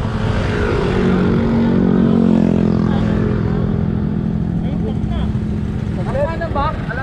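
Motorcycle engines idle and hum nearby.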